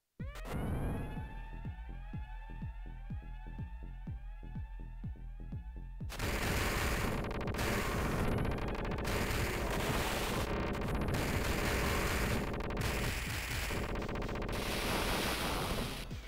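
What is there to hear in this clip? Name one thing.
Electronic video game music plays.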